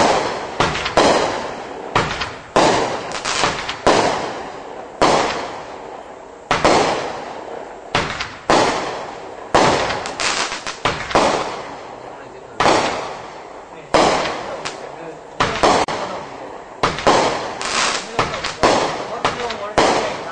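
Fireworks crackle and pop after each burst.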